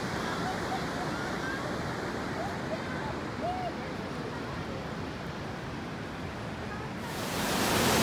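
A river flows and burbles steadily, growing louder near the rapids.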